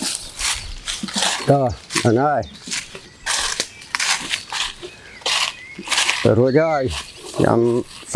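Footsteps rustle through dry leaves.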